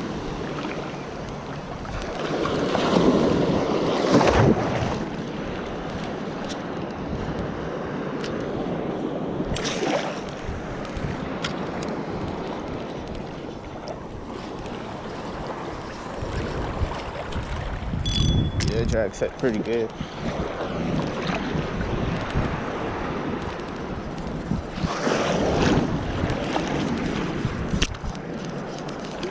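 Small waves lap and splash around a person wading outdoors.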